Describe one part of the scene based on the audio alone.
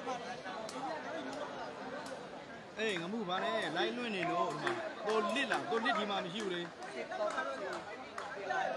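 A large crowd cheers and chatters loudly.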